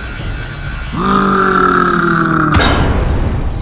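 A monster lets out a loud, deep roar.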